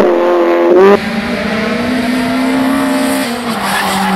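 A rally car engine revs high as the car approaches round a bend.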